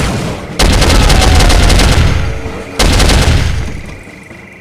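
An automatic rifle fires loud rapid bursts that echo.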